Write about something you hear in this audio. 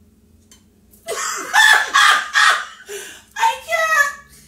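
A woman laughs loudly.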